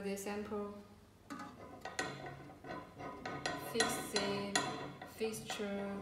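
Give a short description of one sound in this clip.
A plastic bottle is set down on a metal plate.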